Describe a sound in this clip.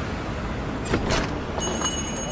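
A glass door swings open.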